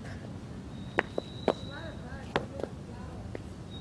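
Footsteps tap on a pavement.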